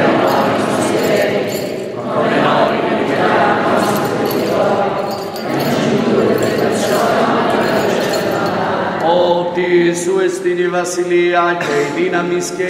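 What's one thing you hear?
A mixed choir of men and women sings together in a large echoing hall.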